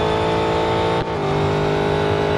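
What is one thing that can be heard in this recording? A racing car engine shifts gear with a brief drop in pitch.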